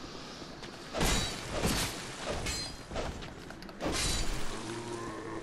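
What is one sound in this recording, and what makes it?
Blades clash and strike in a close fight.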